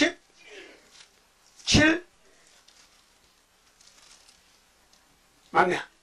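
An elderly man preaches into a microphone in short, emphatic bursts, with pauses between them.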